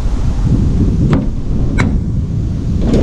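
A van's sliding door clicks and rolls open.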